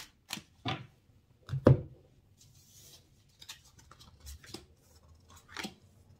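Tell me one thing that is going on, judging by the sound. Cards slide and shuffle in a hand.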